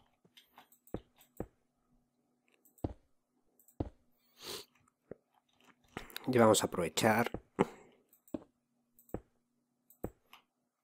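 Stone blocks are set down with short, dull knocks, one after another.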